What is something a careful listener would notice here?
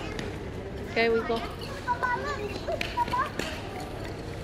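A young child chatters in a high voice nearby.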